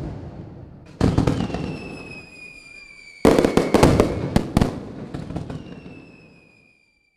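Fireworks burst with loud bangs and crackle.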